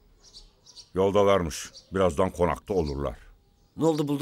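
An elderly woman speaks in a pleading voice.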